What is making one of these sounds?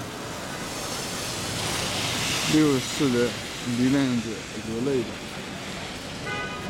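A car swishes past on a wet road.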